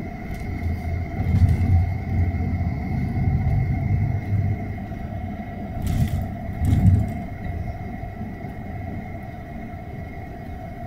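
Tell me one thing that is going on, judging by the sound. Highway traffic roars past steadily outdoors.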